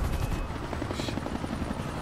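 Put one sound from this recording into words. A helicopter's rotor chops overhead.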